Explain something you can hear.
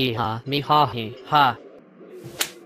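A young man speaks mockingly, close up.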